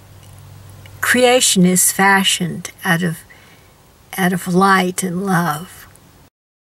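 An older woman talks calmly, close by.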